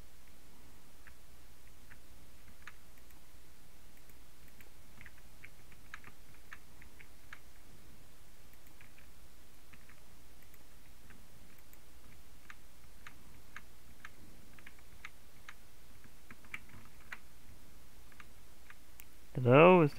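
Stone blocks are placed with short, dry clicks.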